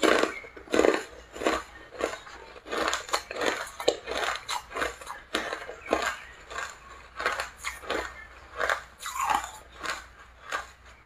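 A young woman crunches hard ice in her mouth, close to the microphone.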